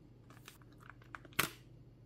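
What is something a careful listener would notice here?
A keycap pops off a switch with a sharp snap.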